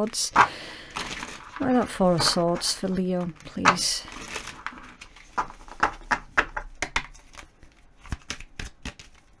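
Playing cards shuffle and flick against each other.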